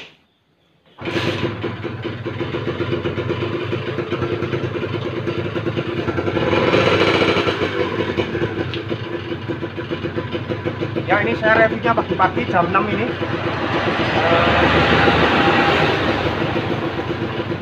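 A motorcycle engine starts and idles steadily with a rough rumble.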